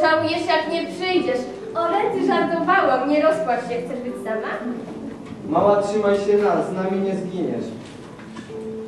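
A teenage boy speaks into a microphone.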